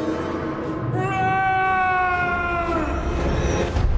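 A man screams in terror close by.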